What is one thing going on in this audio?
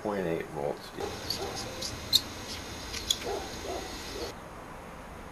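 A marker squeaks while writing on a label.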